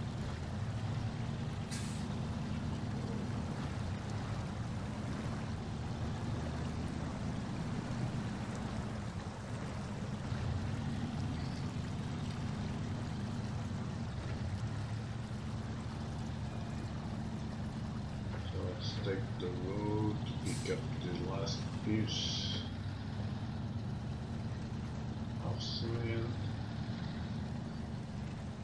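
A heavy truck engine rumbles low and steady as it drives through mud.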